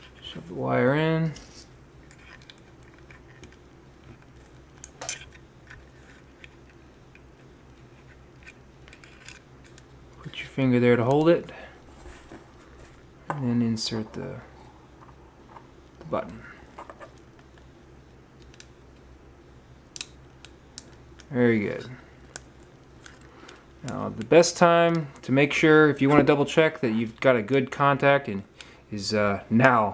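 Plastic parts click and rattle softly as they are handled.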